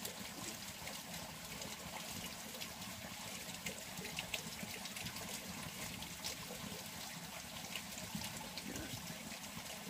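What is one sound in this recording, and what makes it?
A wood fire crackles softly nearby.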